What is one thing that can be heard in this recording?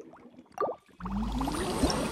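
A shimmering magical whoosh swells up.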